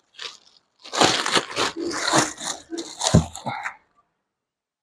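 Plastic packaging rustles and crinkles as it is handled.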